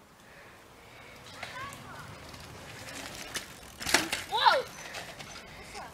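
Mountain bike tyres roll over a dirt trail.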